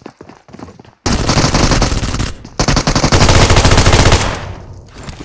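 Rapid automatic gunfire rattles loudly in bursts.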